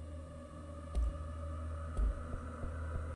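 Short interface clicks sound a few times.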